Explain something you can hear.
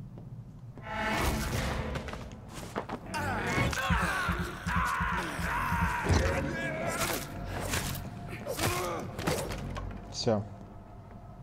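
Heavy blows thud and scuffle during a close fight.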